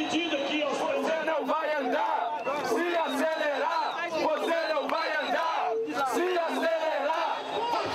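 A young man shouts through a megaphone.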